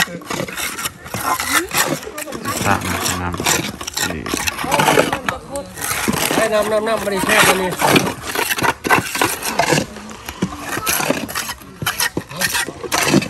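Trowels scrape and tap on bricks and mortar.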